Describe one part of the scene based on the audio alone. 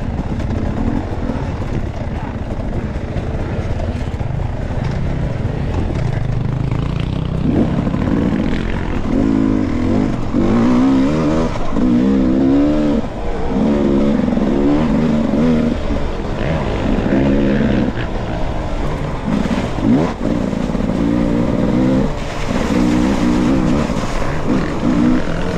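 A dirt bike engine drones and revs up and down as it rides along.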